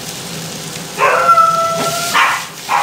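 A metal pan scrapes and clatters on a stove as it is tossed.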